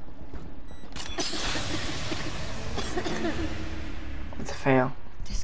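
A loud explosion bursts and roars, then dies away.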